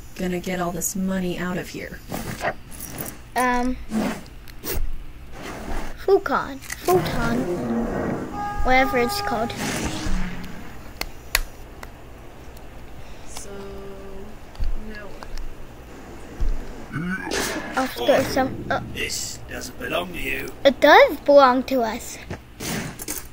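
A young child talks with animation nearby.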